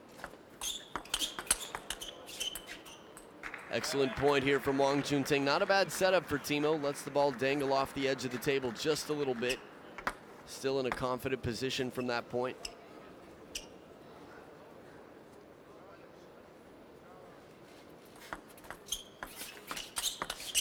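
A table tennis ball clicks sharply off bats and a table in a quick rally.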